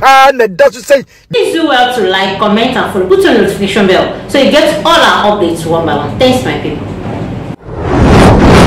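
A woman speaks clearly and steadily into a microphone, like a newsreader.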